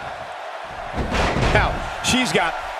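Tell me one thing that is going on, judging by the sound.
A body slams down hard onto a wrestling mat with a heavy thud.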